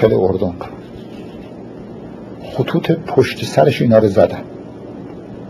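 An elderly man speaks calmly, close to the microphone.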